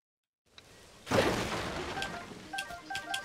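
A game explosion bursts with a loud blast.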